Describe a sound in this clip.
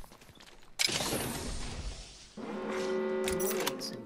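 A metal supply bin creaks open.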